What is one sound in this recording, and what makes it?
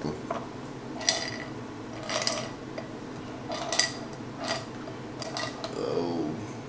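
A bottle rattles as a young man shakes it.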